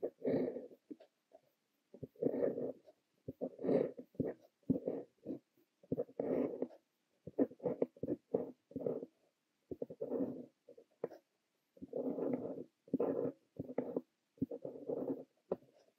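A fountain pen nib scratches softly across paper in short strokes, close up.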